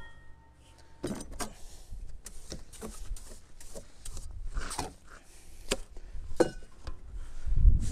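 A trowel scrapes and clinks against a plastic tub of mortar.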